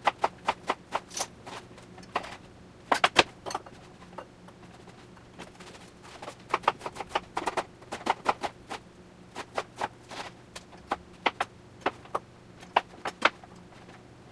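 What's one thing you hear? A knife chops rapidly on a cutting board.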